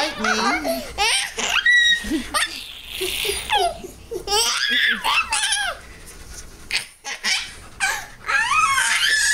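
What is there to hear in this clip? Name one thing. A young child giggles and squeals with laughter.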